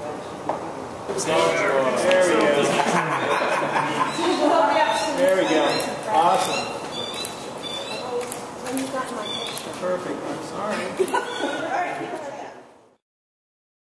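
Several men talk and laugh together nearby.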